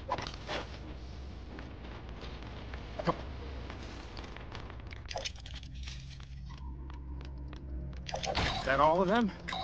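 Footsteps patter quickly across a metal floor.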